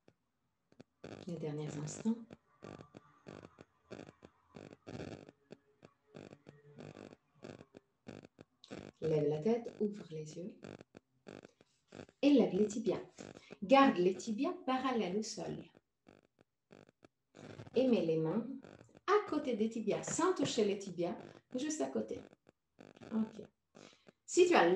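A young woman speaks calmly into a nearby microphone.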